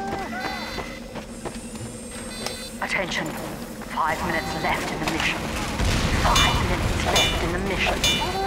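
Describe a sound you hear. A machine whirs and clanks while assembling itself.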